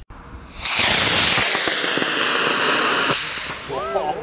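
A model rocket motor roars as the rocket lifts off.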